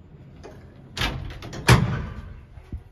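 A metal folding gate slides shut with a loud clatter.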